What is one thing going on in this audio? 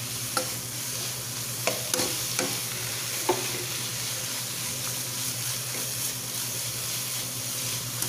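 Food sizzles steadily in a hot pan.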